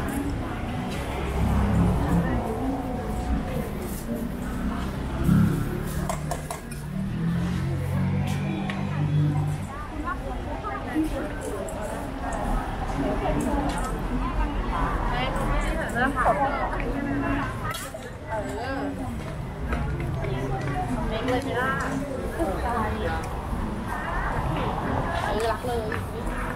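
Traffic hums in the street.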